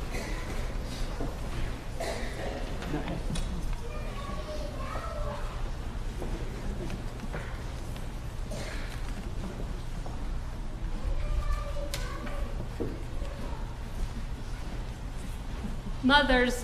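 People murmur softly in a large echoing hall.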